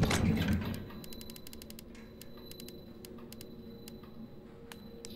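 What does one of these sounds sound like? Soft electronic menu clicks tick in quick succession.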